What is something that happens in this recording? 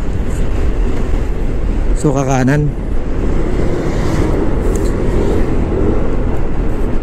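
A motorbike engine hums steadily as it rides along a road.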